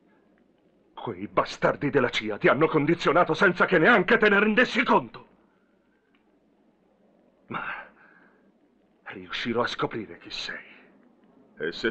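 A middle-aged man speaks close by in a stern, menacing voice.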